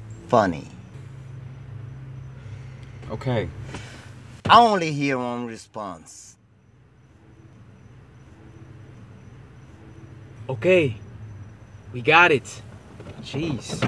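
A young man speaks in a low voice nearby.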